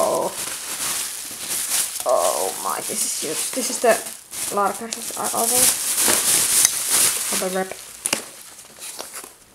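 Plastic bubble wrap rustles and crinkles close by.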